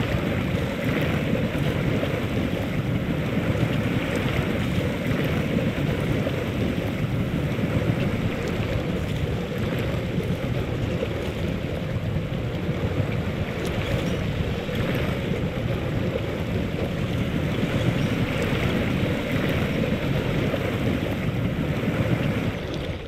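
Water splashes and sloshes under tyres.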